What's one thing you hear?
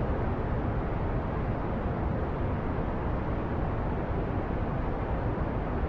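A rocket engine roars steadily.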